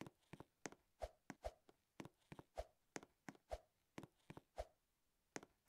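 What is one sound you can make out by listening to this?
Thumps land as a game character jumps onto ledges.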